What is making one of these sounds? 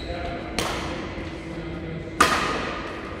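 A shuttlecock is struck sharply with a racket, ringing in an echoing hall.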